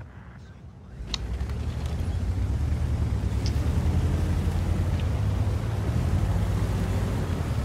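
A heavy tank engine rumbles low and steadily.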